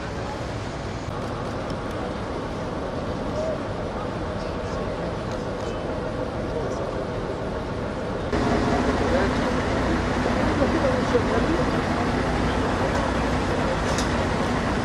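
Several men talk at once nearby, outdoors.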